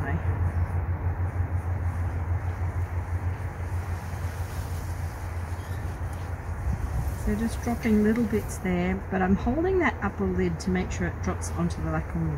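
A towel rubs softly against fur.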